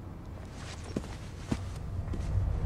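A body thuds onto a carpeted floor.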